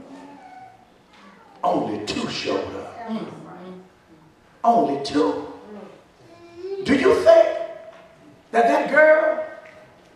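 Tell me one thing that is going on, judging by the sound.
A man preaches forcefully into a microphone, in loud emphatic bursts.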